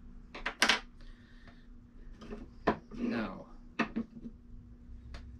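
Metal parts click and clack together.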